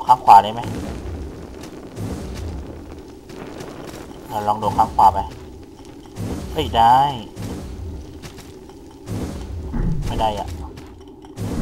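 A sword swishes through the air in quick slashes.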